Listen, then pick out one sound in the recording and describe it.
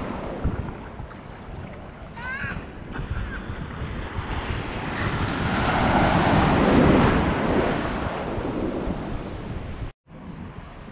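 Waves wash and break loudly close by.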